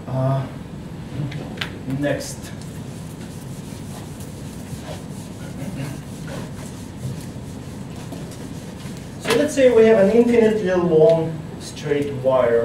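A middle-aged man speaks calmly.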